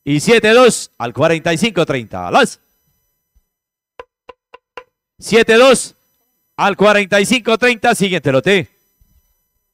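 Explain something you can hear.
A man announces with animation through a microphone.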